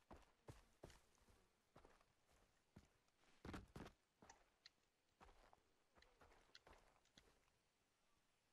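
Footsteps crunch over grass and gravel.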